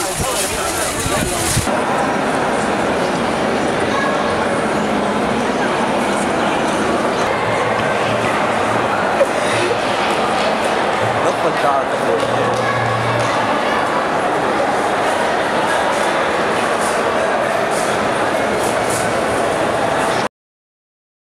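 A large crowd murmurs and chatters indoors.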